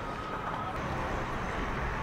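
A baseball bounces on hard dirt.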